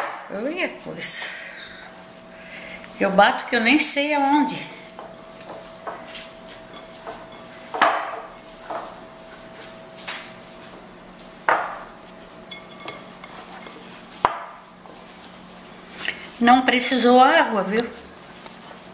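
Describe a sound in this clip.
An elderly woman speaks calmly and close by.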